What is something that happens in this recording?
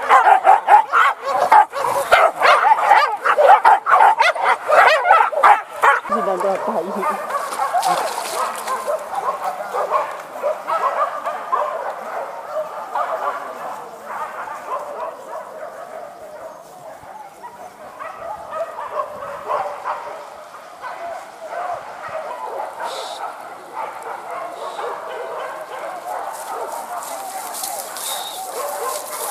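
Dogs bark and yelp excitedly outdoors.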